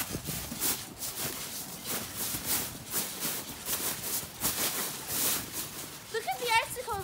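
Children bounce on a trampoline, its mat thumping.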